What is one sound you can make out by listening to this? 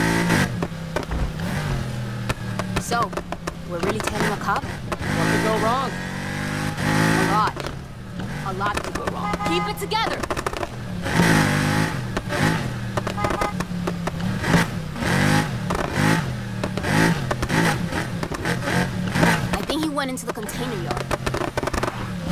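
A car exhaust pops and crackles.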